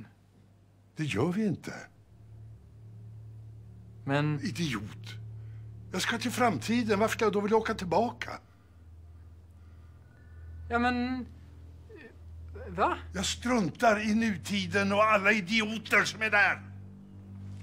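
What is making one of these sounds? An elderly man speaks with animation and close by.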